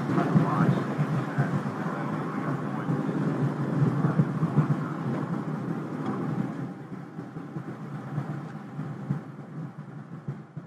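Rocket engines roar steadily with a deep rumble, fading somewhat toward the end.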